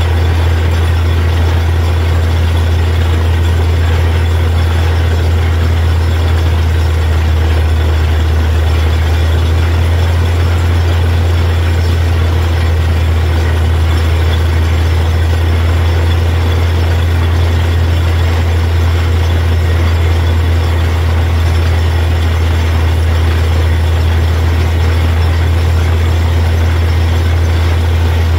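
A drilling rig's engine roars steadily and loudly.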